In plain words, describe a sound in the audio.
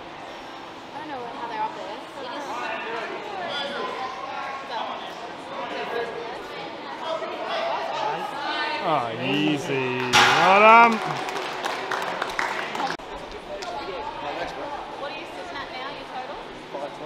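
A crowd cheers and shouts encouragement loudly in a hall.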